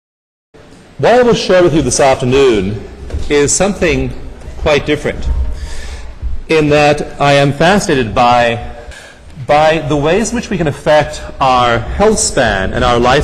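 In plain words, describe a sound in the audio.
A man speaks calmly through a microphone, lecturing.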